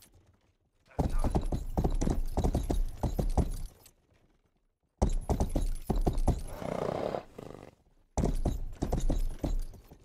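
A horse gallops with quick hoofbeats on dirt.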